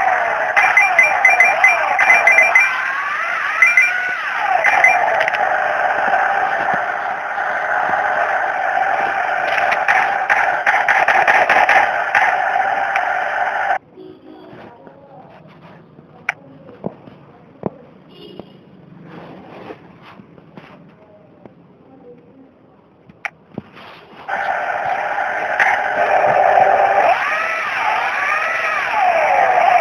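A cartoonish car engine drones and revs up and down.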